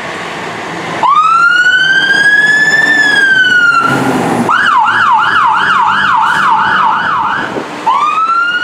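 A siren wails loudly, rising and falling, then switching to a fast yelp.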